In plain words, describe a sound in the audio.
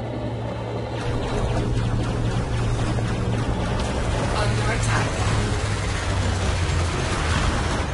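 Laser cannons fire in a rapid, buzzing stream.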